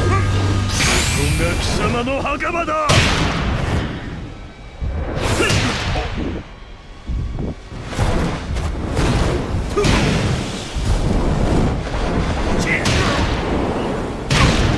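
Heavy blows and crashing impacts land again and again.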